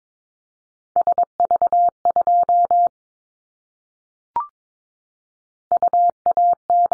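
Morse code beeps sound in short and long bursts of a steady tone.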